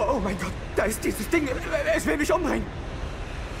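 A man speaks in a frightened, stammering voice close by.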